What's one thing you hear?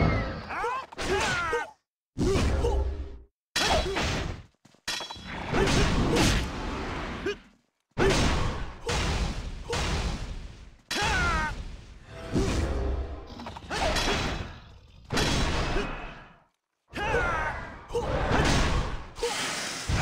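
Magic spells whoosh and burst in a fast battle.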